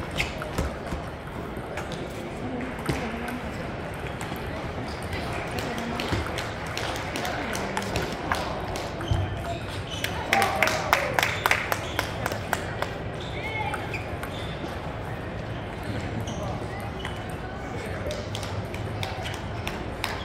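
Many other table tennis balls tick and clatter in a large echoing hall.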